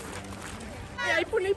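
A young woman shouts close by.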